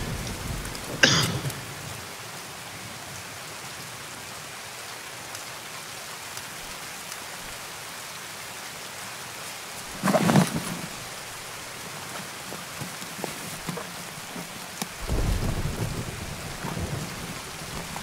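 Game gear rustles and clunks as items are moved between bags.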